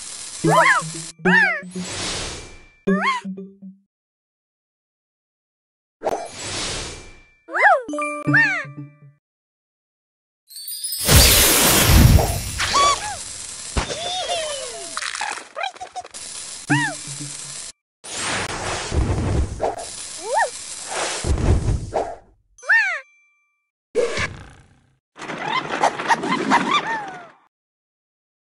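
Bright chiming and whooshing game sound effects play in short bursts.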